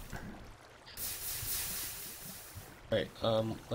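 Water gushes and splashes.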